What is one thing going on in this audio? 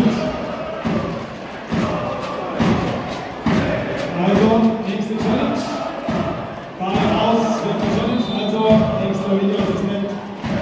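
Fans clap in rhythm.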